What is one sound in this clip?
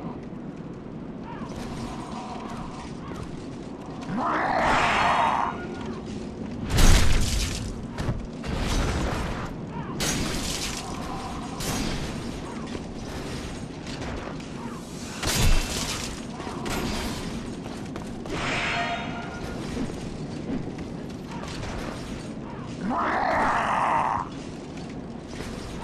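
Armoured footsteps clank on stone.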